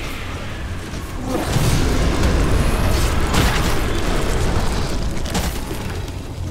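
Magic blasts whoosh and crackle in a loud battle.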